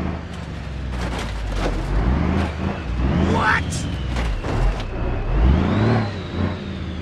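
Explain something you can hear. Truck tyres thump over a speed bump.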